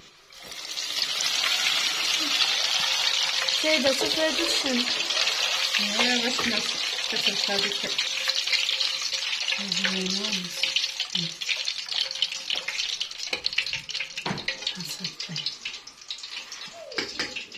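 Hot oil sizzles and bubbles loudly, then fades.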